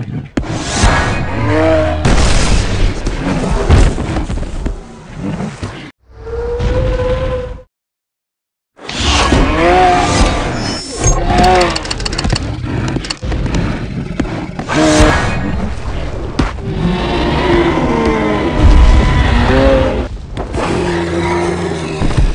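Heavy thuds and blasts sound as creatures attack.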